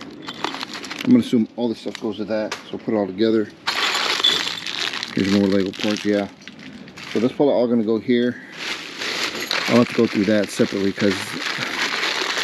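A hand rummages through a plastic trash bag, rustling the plastic.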